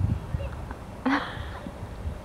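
A ball is kicked on grass.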